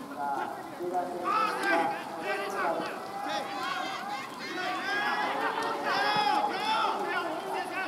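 Several men shout and call out loudly outdoors.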